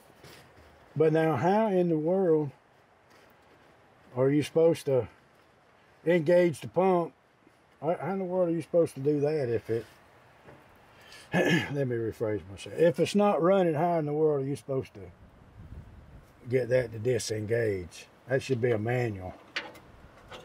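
A man speaks close by, explaining calmly.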